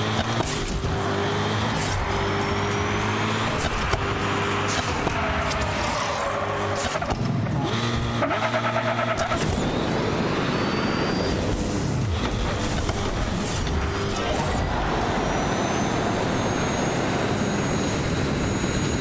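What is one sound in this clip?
Upbeat electronic music plays.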